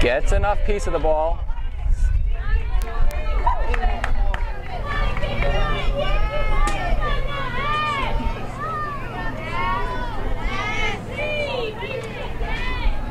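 Young women on a field shout and cheer outdoors.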